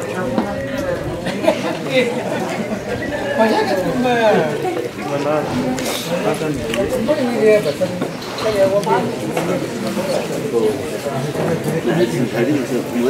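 Men talk with animation nearby, outdoors.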